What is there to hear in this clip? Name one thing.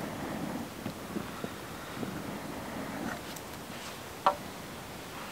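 A wooden stick knocks against wood.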